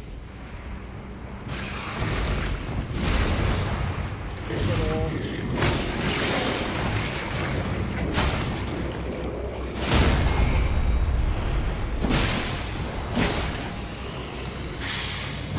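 A blade whooshes through the air in sharp swings.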